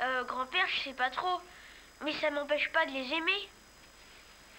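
A young boy speaks clearly and close by.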